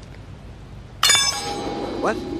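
A heavy thud sounds as someone lands from a jump.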